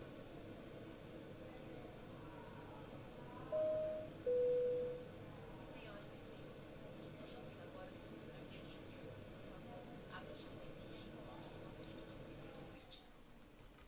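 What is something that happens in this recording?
A jet engine hums steadily in the cabin.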